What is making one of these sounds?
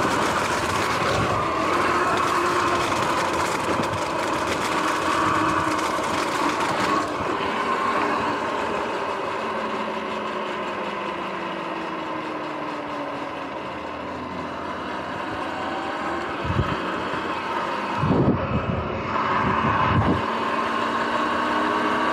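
An electric bike motor whines, rising and falling in pitch as the bike speeds up and slows down.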